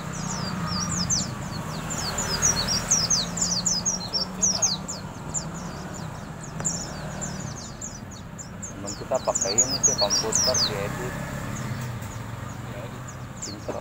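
A small bird chirps rapidly in a cage close by.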